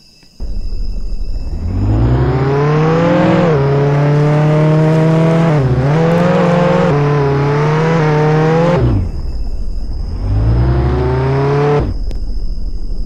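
A car engine revs up and shifts gears as it accelerates, then drops and revs again.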